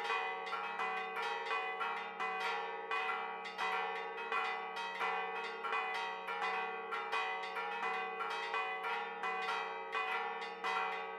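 Church bells ring in a rapid, steady peal with long ringing tones.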